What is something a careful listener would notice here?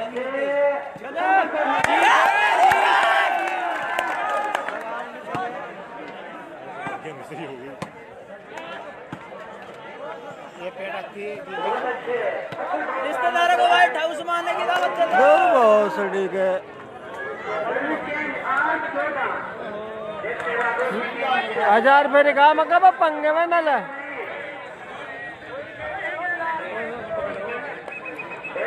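A crowd of men shouts and cheers outdoors, heard from a distance.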